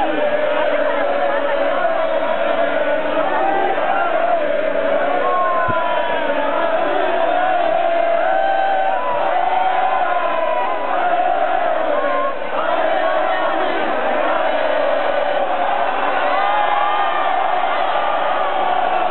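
A large crowd of fans cheers and chants loudly outdoors.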